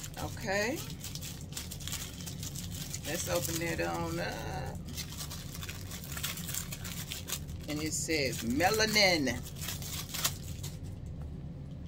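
Paper and plastic packaging rustle and crinkle.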